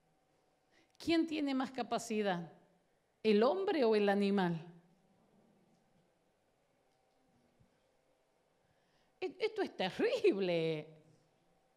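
A middle-aged woman speaks animatedly into a microphone in short bursts.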